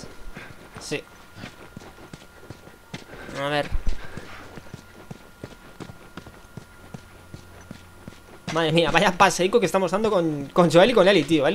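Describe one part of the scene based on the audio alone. Footsteps scuff across a gritty floor.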